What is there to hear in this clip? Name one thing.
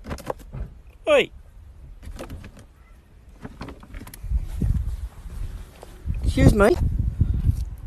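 An emu pecks at a bag, rustling it.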